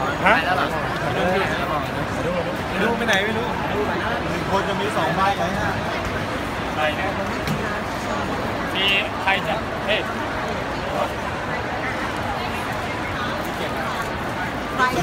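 Many voices of a crowd chatter in a large echoing hall.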